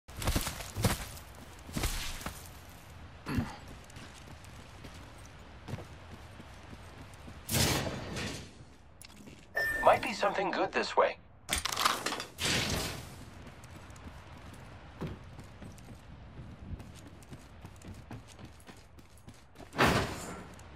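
Footsteps patter quickly on hard ground in a game.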